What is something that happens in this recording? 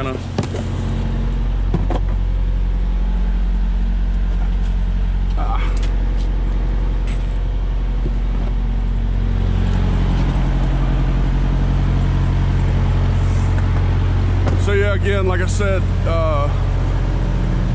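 A diesel truck engine idles with a steady low rumble.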